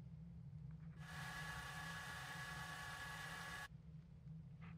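A tape player whirs as it rewinds.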